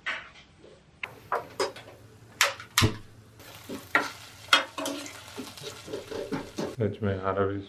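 A spoon scrapes and clinks against a pan.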